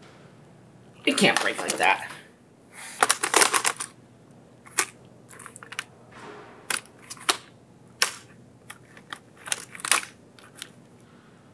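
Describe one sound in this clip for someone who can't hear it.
A laptop clicks and clatters as it is handled and flexed.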